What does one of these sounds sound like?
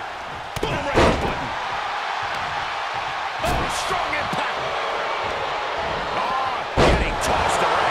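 Heavy thuds of bodies slam onto a wrestling ring mat.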